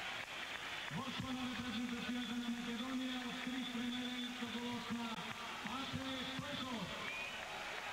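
Fans chant together in a stadium.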